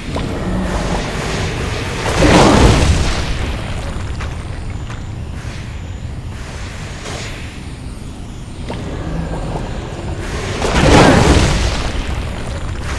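Jetpack thrusters hiss and roar in loud bursts.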